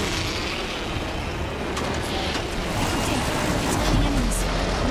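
Wind rushes loudly past a gliding figure.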